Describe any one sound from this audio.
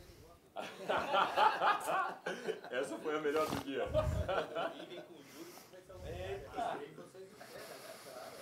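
Several men laugh.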